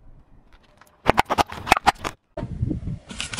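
A car tyre squashes toothpaste tubes with sharp pops.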